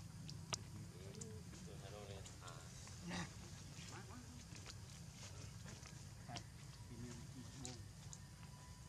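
A baby monkey squeals and whimpers in short high cries.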